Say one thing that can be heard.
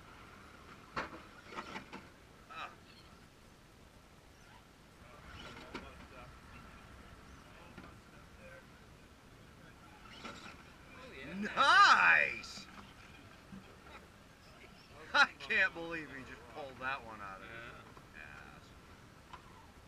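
Plastic wheels and bodies knock and scrape against rock.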